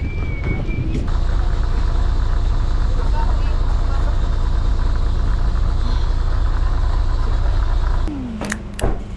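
Many people chatter.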